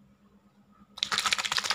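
Liquid sloshes in a small plastic bottle.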